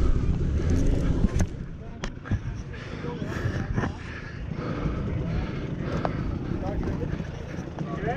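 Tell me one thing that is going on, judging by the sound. Rocks crunch and clatter under a dirt bike's tyres.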